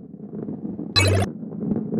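A bright chime rings as a coin is collected.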